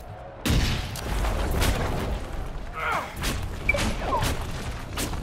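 Fire blasts roar and crackle.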